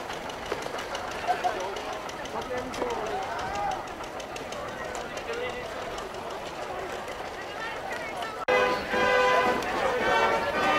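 A crowd of adults and children chatters and calls out outdoors.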